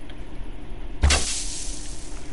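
A bow string twangs sharply as an arrow is loosed.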